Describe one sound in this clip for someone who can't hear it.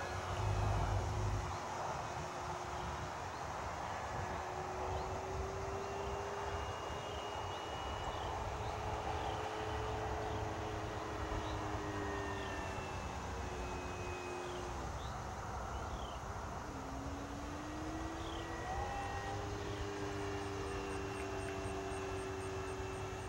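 A small model plane engine drones overhead, its pitch rising and falling.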